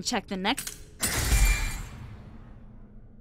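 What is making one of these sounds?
A bright game chime sounds and fades.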